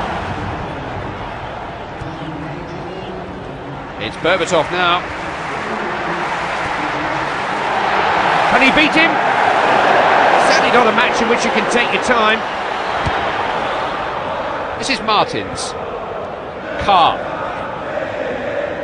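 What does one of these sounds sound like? A large stadium crowd roars steadily, swelling louder for a while.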